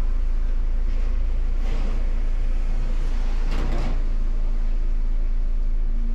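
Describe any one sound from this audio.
A car passes by on the street.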